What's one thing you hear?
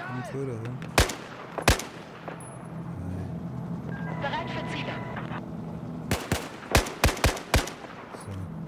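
Rifle shots crack sharply in short bursts.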